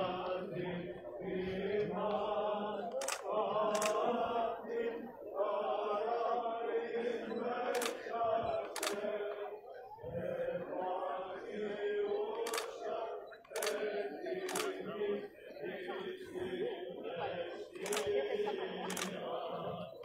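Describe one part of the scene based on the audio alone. A group of people sing a slow hymn outdoors.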